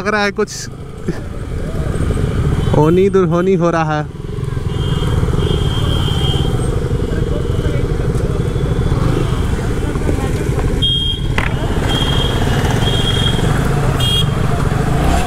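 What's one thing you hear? Vehicles drive past on a busy road.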